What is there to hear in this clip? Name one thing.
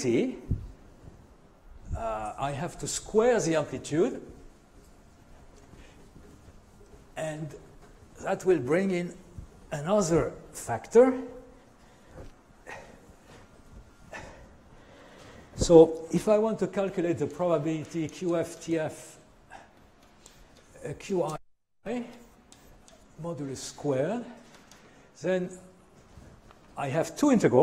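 An elderly man lectures calmly through a microphone.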